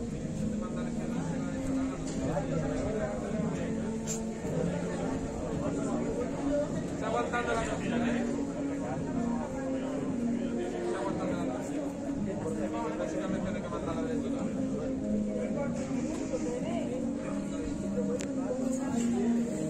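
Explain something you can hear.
A crowd of men and women murmurs and chats nearby, outdoors.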